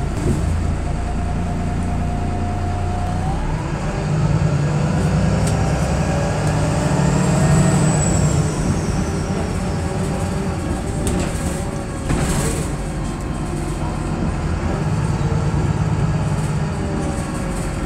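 Loose fittings rattle as a bus moves.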